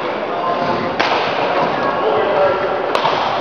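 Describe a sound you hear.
A racket strikes a shuttlecock with a sharp smack in a large echoing hall.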